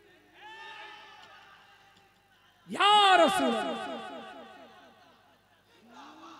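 A young man chants loudly into a microphone, echoing through loudspeakers.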